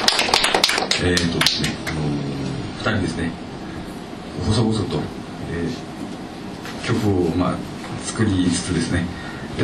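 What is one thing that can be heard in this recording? A man sings into a microphone, amplified through speakers.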